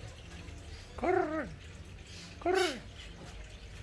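A parrot squawks loudly nearby.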